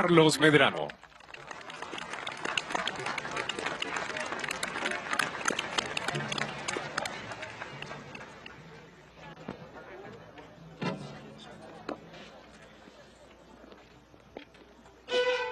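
A large orchestra plays music outdoors.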